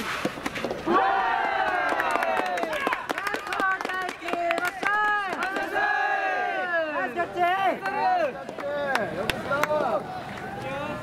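Young women shout loudly and cheer from a distance.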